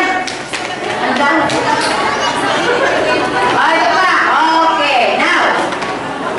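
A woman speaks with animation through a microphone and loudspeaker in a large room.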